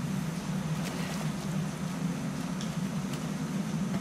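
Water splashes as a man wades through a stream.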